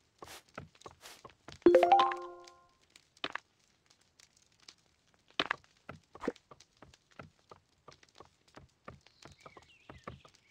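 Footsteps tap lightly on a hard floor.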